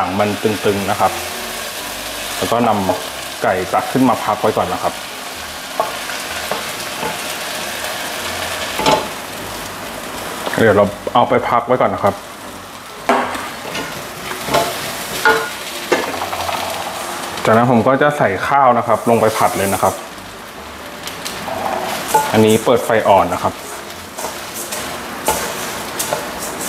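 A wooden spatula scrapes and stirs in a metal pan.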